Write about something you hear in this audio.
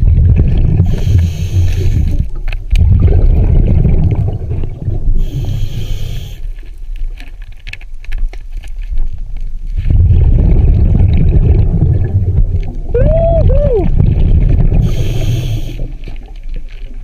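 Exhaled bubbles from a diver rush and gurgle in bursts close by.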